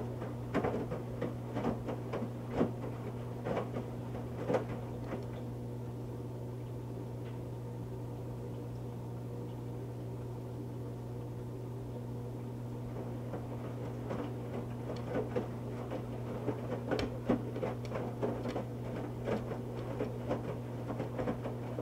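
A washing machine motor hums steadily.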